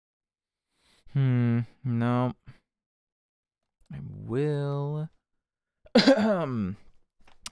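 A man speaks into a close microphone in short, drawn-out bursts.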